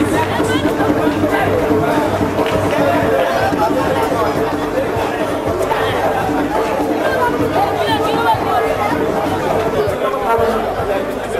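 A crowd of men chatters and calls out close by.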